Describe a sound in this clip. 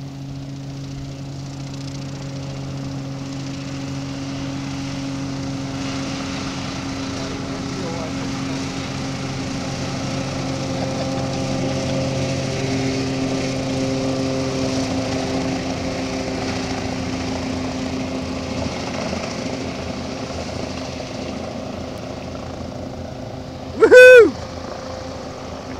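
A hovercraft engine roars steadily across the water and slowly fades into the distance.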